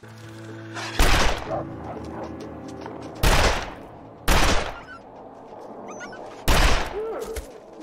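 Loud gunshots ring out several times.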